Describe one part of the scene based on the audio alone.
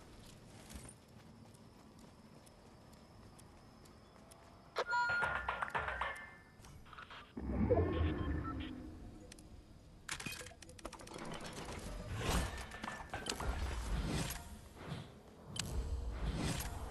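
Footsteps patter on pavement.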